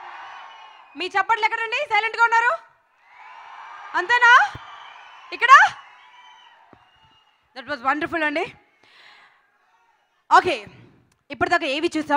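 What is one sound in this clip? A woman speaks with animation through a microphone in a large hall.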